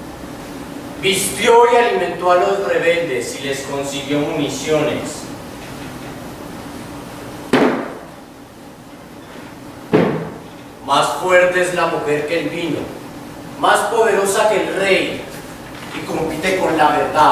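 A man speaks loudly and theatrically in a large echoing hall.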